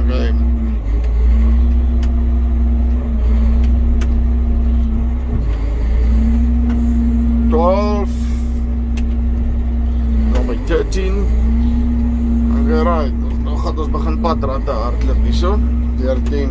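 A tractor cab creaks and rattles over bumpy ground.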